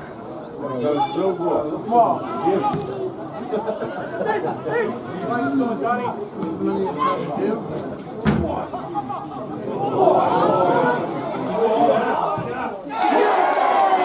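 Nearby men in a crowd chatter and call out outdoors.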